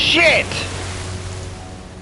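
Water splashes heavily.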